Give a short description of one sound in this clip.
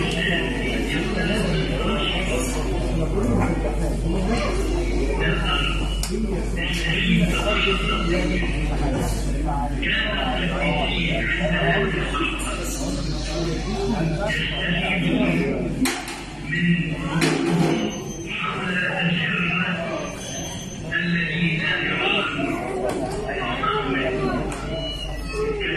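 Men and women talk over one another close by.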